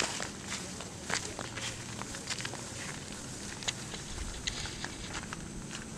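Footsteps crunch on a gravel track.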